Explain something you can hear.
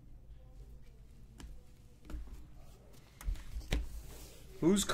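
Trading cards rustle and tap as hands stack them.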